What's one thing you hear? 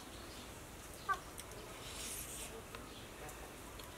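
A young woman chews food noisily.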